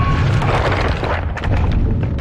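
A game character falls with a whooshing rush.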